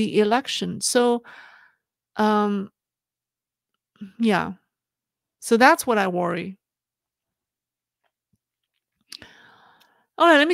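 A woman speaks calmly into a microphone, with pauses.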